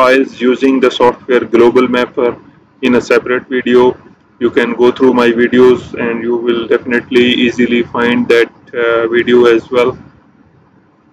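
A man speaks calmly and close to a microphone.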